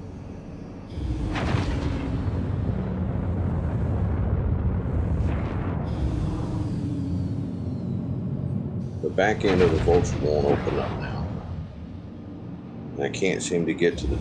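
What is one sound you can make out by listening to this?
A spaceship's engine rumbles low and steady.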